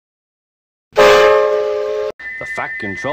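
A steam engine's whistle blows loudly.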